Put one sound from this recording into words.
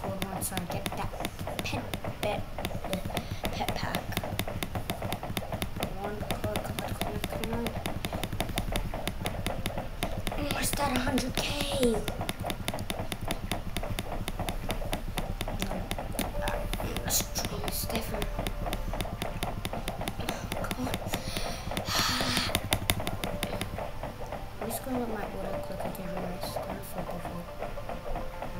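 Rapid, soft game punches patter on a punching bag without pause.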